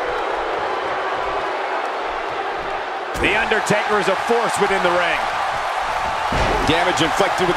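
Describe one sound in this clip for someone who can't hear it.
A large arena crowd roars.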